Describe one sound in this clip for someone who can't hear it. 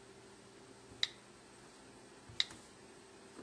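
A phone's keyboard clicks as a finger taps its glass.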